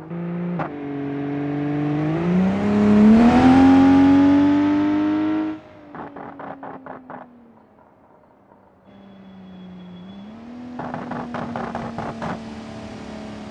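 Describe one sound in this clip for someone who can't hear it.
A car engine revs up and roars loudly, then drops to a low idle.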